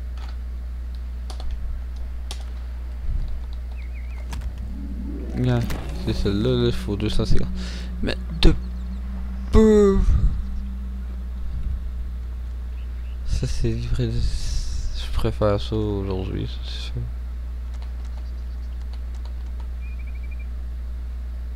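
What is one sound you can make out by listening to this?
Soft interface clicks sound as a menu selection moves.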